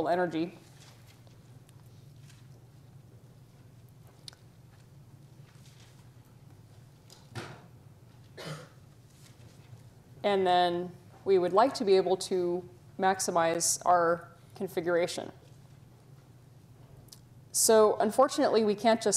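A woman lectures calmly through a microphone.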